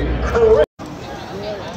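A woman speaks excitedly close by.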